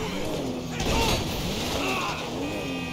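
A car crashes into an obstacle with a loud thud.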